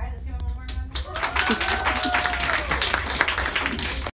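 Children clap their hands.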